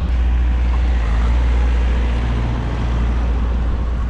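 A car engine idles and pulls away close by.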